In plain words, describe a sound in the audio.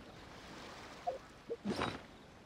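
Short interface chimes sound.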